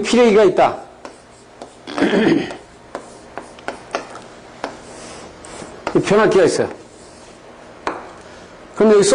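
An elderly man speaks calmly, as if lecturing.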